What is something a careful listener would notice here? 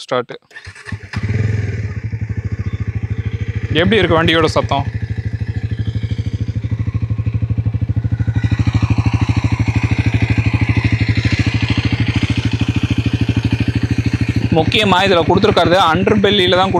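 A motorcycle engine starts up and idles with a steady, low rumble.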